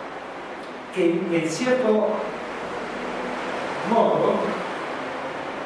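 An elderly man speaks through a microphone and loudspeakers.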